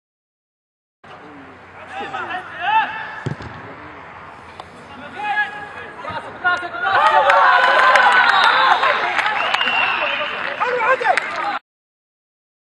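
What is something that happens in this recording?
Young men shout and cheer across an open outdoor pitch.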